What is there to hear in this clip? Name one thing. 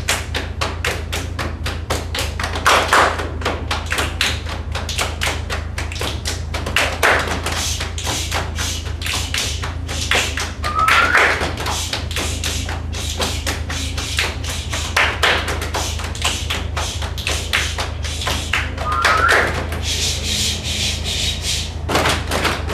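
A group of children claps hands in a quick, steady rhythm in an echoing room.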